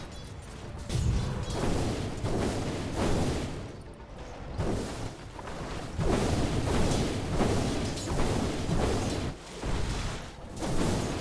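Game combat sounds clash and burst in quick succession.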